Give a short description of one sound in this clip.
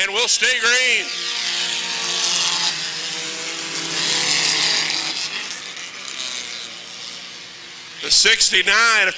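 Race car engines roar loudly as they pass.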